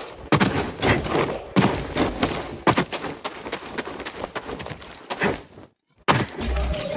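Wind rushes loudly past a figure falling through the air.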